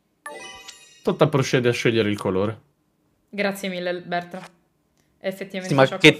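Young men talk and laugh with animation over an online call.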